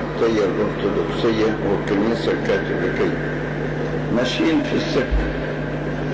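An elderly man speaks slowly into a microphone, heard through a loudspeaker in a large room.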